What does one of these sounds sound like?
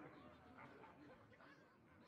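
A game card attack lands with a short impact effect.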